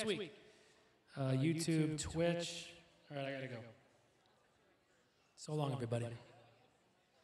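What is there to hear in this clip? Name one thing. A man sings short phrases through a microphone.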